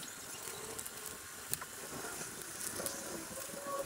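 Scissors snip through a carcass.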